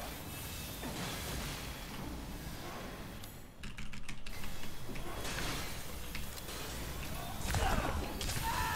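Gunshots crack with a metallic ring.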